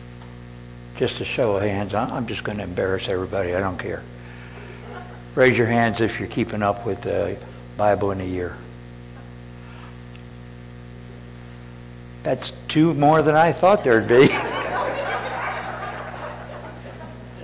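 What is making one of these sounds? A middle-aged man speaks with animation through a microphone in an echoing hall.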